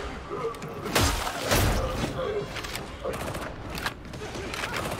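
A gun fires heavy, booming shots.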